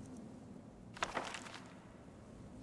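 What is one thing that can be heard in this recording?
A book opens with a rustle of paper.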